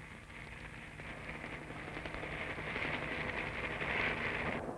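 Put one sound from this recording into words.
A helicopter's rotor whirs steadily overhead.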